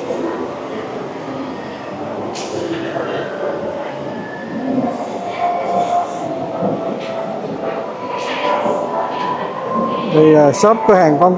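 A crowd of men and women murmur and talk in a large echoing hall.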